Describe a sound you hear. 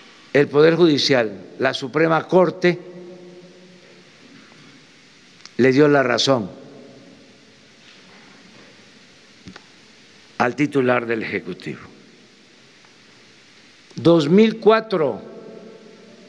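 An elderly man speaks slowly into a microphone, with long pauses, in a large echoing hall.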